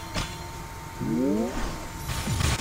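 A rising game sound effect swooshes.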